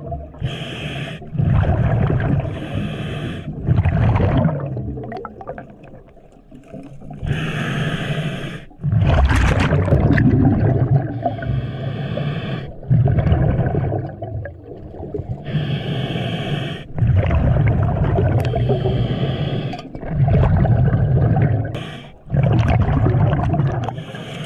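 Exhaled air bubbles rumble and gurgle in bursts underwater.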